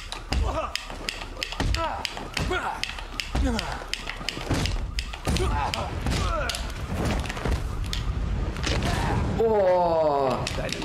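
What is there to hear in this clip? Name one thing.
Men grunt and cry out in pain.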